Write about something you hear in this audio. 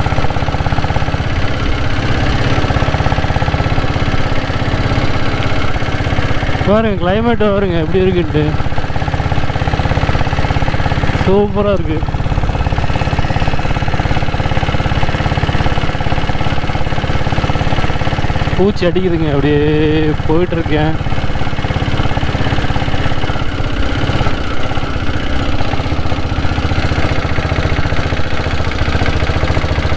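A motorcycle engine thumps steadily at cruising speed.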